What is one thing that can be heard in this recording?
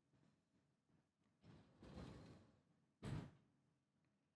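An elevator door slides shut with a soft thud.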